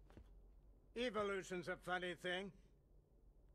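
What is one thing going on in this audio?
An elderly man speaks slowly and menacingly.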